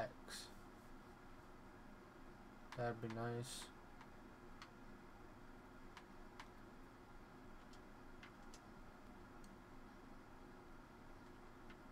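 Short soft electronic clicks sound now and then as a game menu is navigated.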